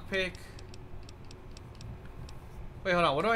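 Soft electronic clicks tick quickly as a menu scrolls.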